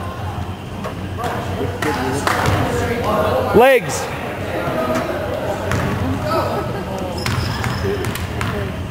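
Young players call out in a large echoing gym.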